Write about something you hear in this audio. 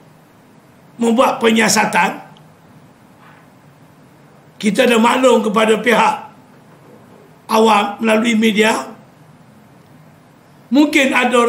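An elderly man speaks forcefully into close microphones, in short bursts with pauses.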